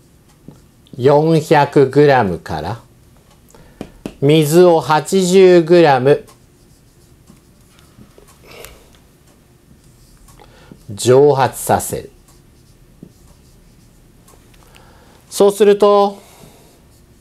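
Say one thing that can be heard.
A middle-aged man speaks calmly and clearly, close by, in short phrases.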